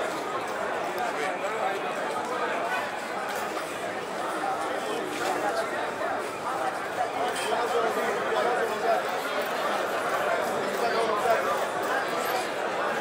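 A crowd of men and women chatters loudly outdoors.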